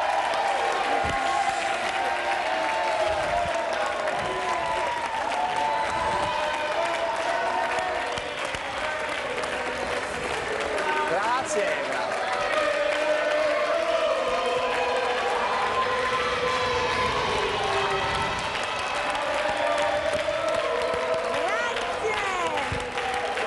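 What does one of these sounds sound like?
An audience claps along in a large hall.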